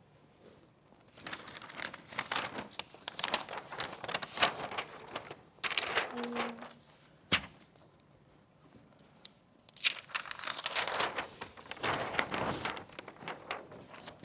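Large paper sheets rustle and crinkle as they are handled.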